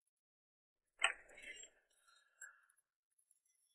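A metal gate clanks open.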